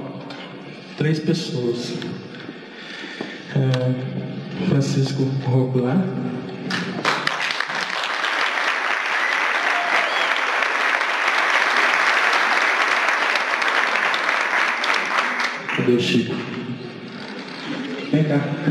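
A man speaks loudly into a microphone, heard through loudspeakers in a large hall.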